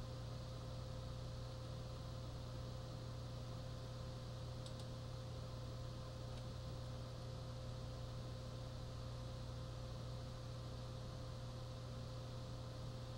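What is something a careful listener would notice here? Flames roar steadily from a video game through a television speaker.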